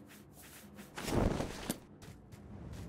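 A soft whoosh sounds as a game menu closes.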